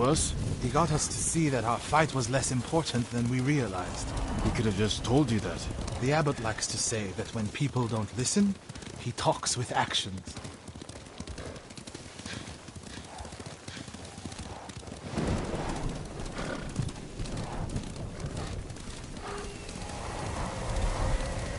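Horses' hooves clop steadily on a dirt path.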